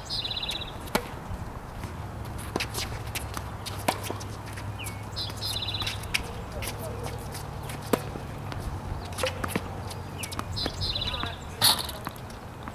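Tennis balls are struck sharply by rackets, back and forth.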